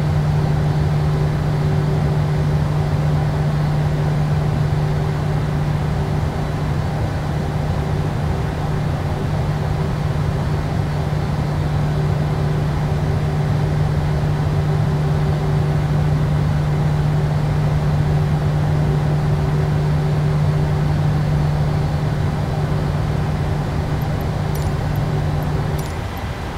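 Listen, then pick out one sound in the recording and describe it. A jet engine hums with a steady low drone.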